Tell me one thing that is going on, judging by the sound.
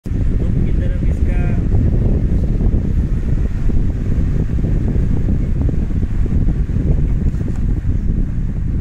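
An electric fan whirs steadily.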